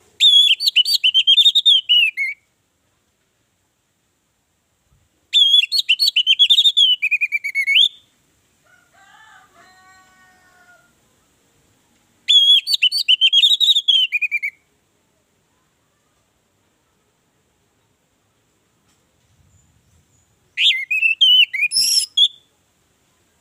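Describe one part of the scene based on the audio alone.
An orange-headed thrush sings in loud bursts of song, with pauses in between.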